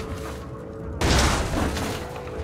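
A heavy door bursts open with a loud bang.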